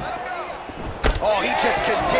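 A punch lands with a heavy thud.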